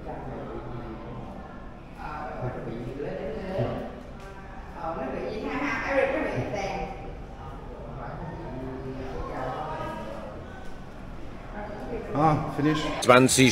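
Women and children talk and chatter nearby indoors.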